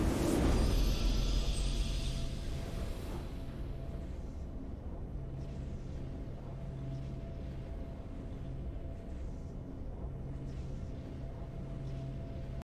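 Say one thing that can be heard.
Music plays in a video game.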